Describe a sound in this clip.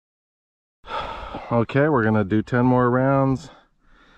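A pistol magazine clicks out of its grip.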